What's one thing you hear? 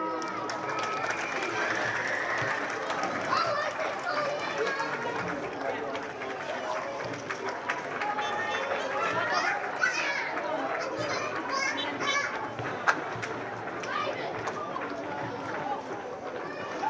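Children and adults chatter and call out outdoors.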